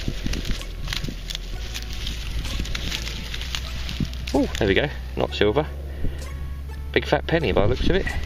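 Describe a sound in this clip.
Clumps of soil crumble and rustle in a gloved hand.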